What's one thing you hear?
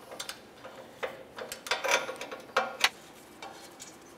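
A ratchet wrench clicks against metal.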